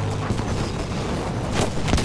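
A tank engine rumbles nearby.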